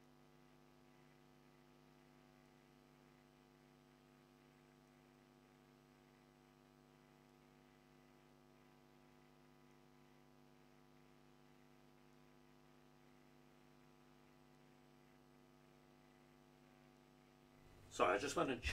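An organ holds a soft, steady chord.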